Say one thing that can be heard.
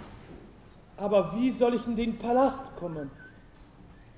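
A man speaks in a questioning tone.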